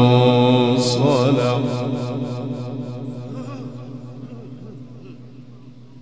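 A loud echo of an older man's chanting rings on and slowly fades away.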